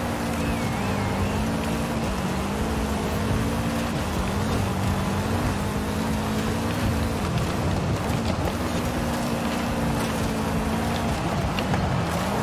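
Tyres skid and crunch on gravel.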